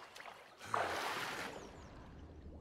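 Water splashes as a man dives in.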